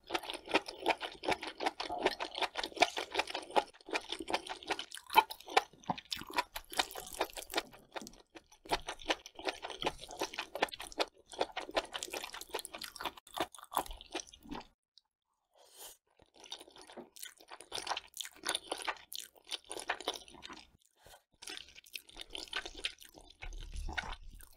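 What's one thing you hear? A woman chews wet, sticky food with loud squelching sounds close to a microphone.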